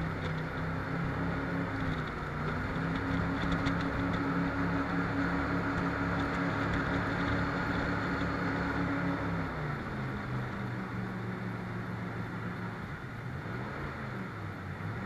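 Water rushes and splashes loudly against the hull.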